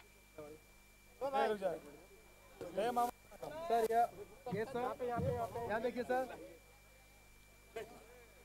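A man speaks with animation over a loudspeaker outdoors.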